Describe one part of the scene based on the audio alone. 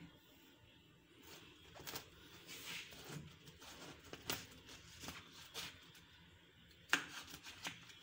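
A knife slices through a firm melon with soft crunching scrapes.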